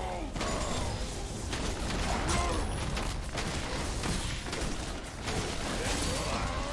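Game spells whoosh and crackle in a busy battle.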